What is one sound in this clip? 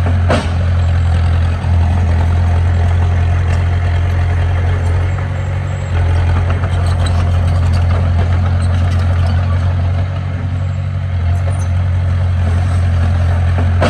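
A bulldozer pushes and scrapes dirt.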